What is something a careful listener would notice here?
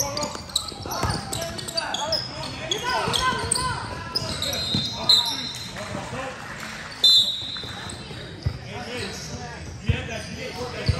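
Basketball sneakers squeak on an indoor sports court in an echoing hall.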